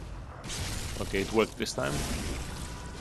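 A blade slashes into flesh with a wet thud.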